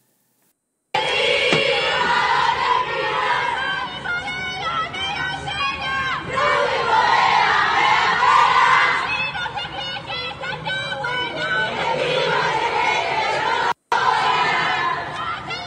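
A large crowd sings and cheers together from a distance outdoors.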